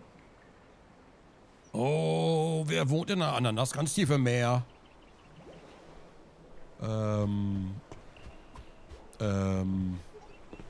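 Footsteps pad softly on sand.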